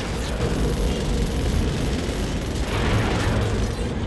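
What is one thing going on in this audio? Weapons fire in short bursts.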